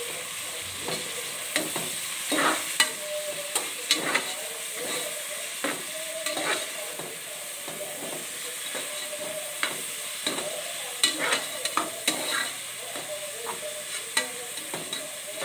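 Vegetables rustle and squelch as they are stirred.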